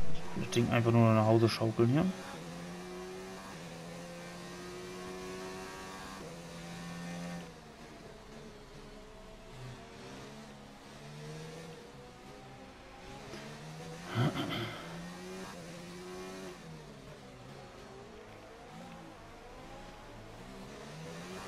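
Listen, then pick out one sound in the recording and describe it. A racing car engine roars and whines, rising and falling in pitch as it shifts gears.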